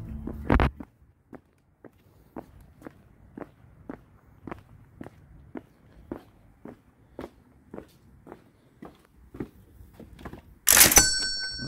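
Footsteps tap on pavement at a steady walking pace.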